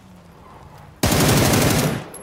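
A gun fires in rapid bursts, loud and sharp.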